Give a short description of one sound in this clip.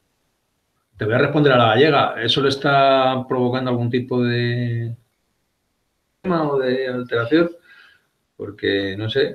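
A middle-aged man speaks calmly and close, heard through an online call.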